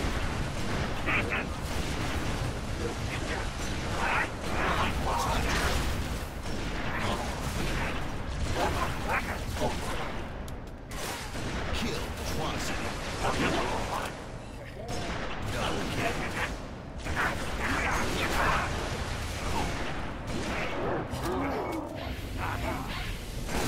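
Laser rifle shots fire in quick bursts.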